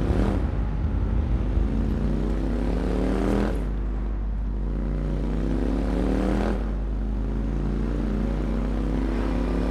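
A motorcycle engine roars steadily, rising in pitch as it speeds up and dropping as it shifts gear.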